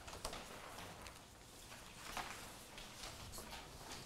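Papers rustle faintly on a table.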